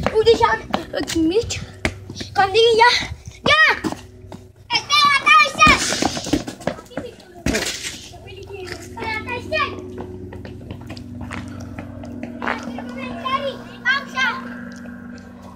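Young children shout and call out excitedly nearby.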